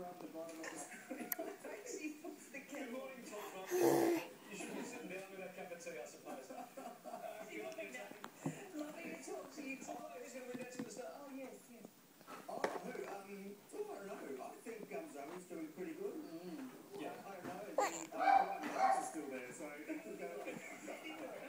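A baby smacks its lips while chewing.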